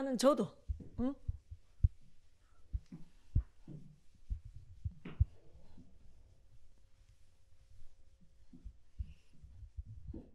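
An eraser rubs across a board.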